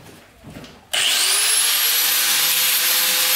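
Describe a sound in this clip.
A power drill whirs loudly and steadily into concrete.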